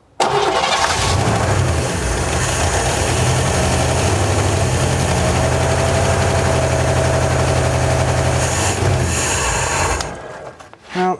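An engine runs loudly and roughly nearby.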